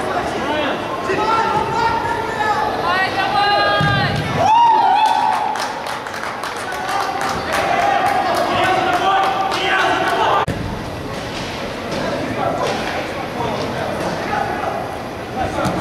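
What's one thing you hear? A football thuds off a player's foot.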